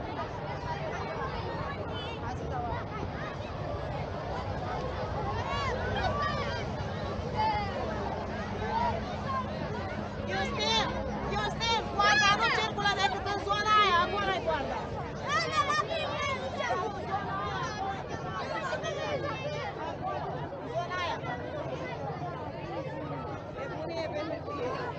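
A crowd of children and adults chatter and shout across an open field outdoors.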